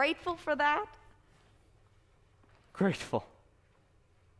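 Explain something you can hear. A young woman speaks in a high, lively voice in short bursts.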